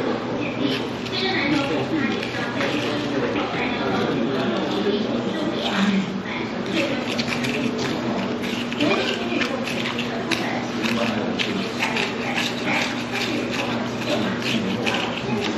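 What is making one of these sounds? A spoon clinks against a paper cup.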